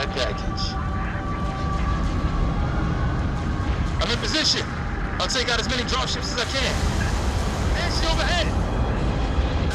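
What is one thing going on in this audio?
Gunfire crackles in a video game battle.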